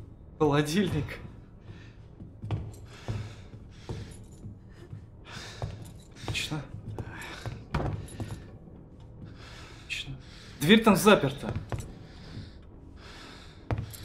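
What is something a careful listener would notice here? Footsteps creak softly on a wooden floor.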